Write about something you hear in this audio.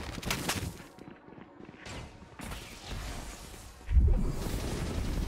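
A man talks into a headset microphone.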